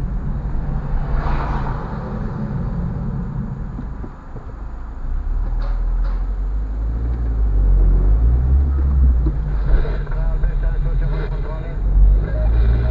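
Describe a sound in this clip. Tyres roll over city pavement.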